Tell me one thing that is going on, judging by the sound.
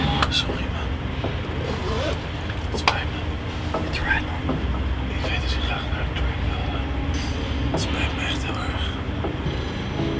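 A young man speaks quietly and apologetically close by.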